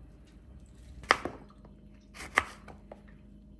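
A knife cuts through a lemon and taps a cutting board.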